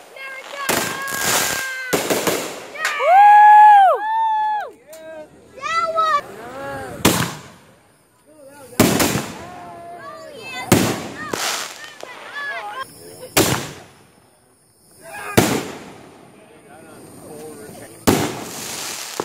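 Fireworks burst with loud booming bangs outdoors.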